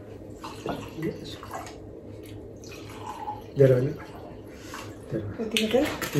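Wine glugs as it pours into a glass.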